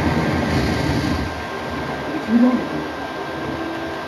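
An explosion booms through a television speaker.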